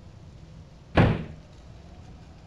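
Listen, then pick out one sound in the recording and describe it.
A wooden door bangs shut.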